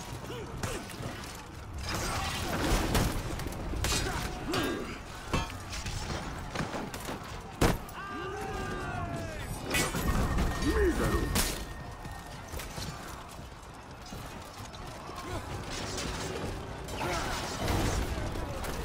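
Warriors shout and grunt as they fight.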